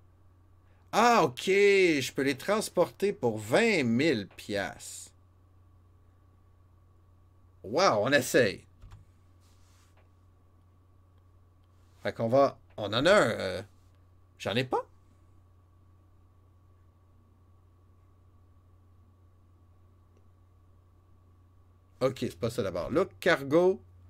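A man talks casually with animation into a close microphone, pausing between phrases.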